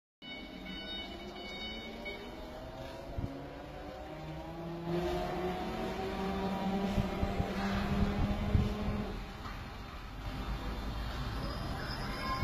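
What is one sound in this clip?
An electric motor whines steadily.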